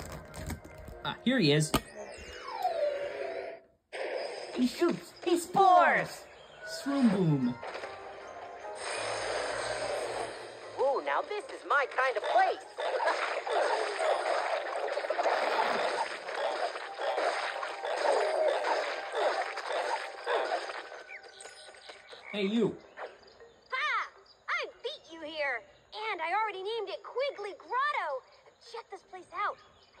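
Video game music and effects play from a television speaker.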